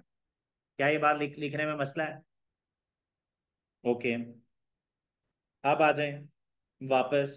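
A young man speaks calmly and clearly into a close microphone, in short bursts with pauses.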